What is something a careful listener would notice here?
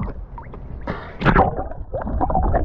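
Water splashes briefly as a diver reaches the surface.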